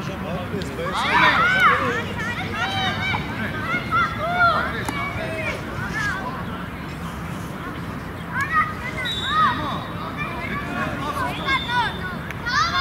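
Young boys call out across an open field outdoors.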